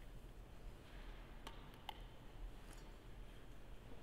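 Small metal vessels clink against each other.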